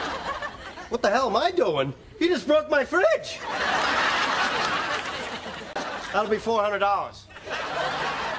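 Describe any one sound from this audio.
Another young man speaks loudly and expressively, close by.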